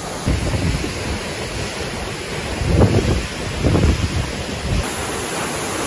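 A stream trickles over rocks.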